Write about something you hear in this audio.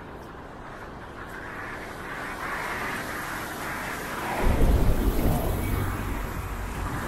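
A bus approaches and passes close by with a loud engine rumble.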